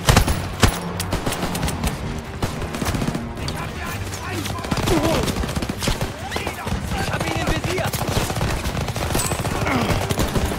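A low rumble of battle drones on steadily.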